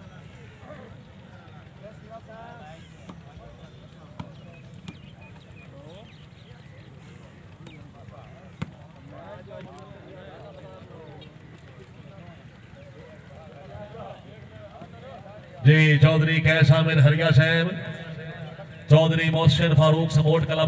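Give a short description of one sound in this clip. Young men call out and chatter outdoors during a game.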